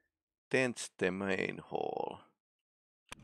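A man speaks briefly and calmly into a microphone, close by.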